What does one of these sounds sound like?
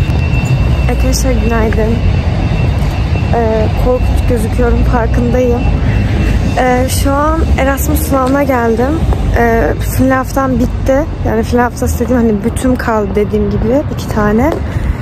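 A young woman talks calmly and close to the microphone.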